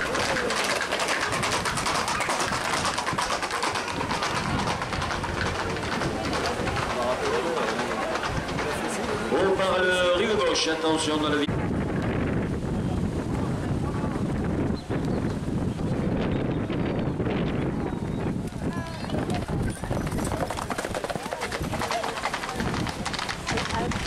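Horses' hooves clatter on pavement as riders trot past.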